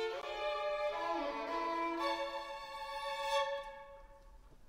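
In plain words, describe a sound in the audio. A violin plays a slow melody in an echoing hall.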